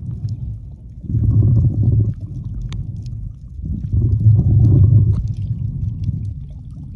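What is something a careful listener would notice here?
Water rumbles and swirls in muffled surges underwater.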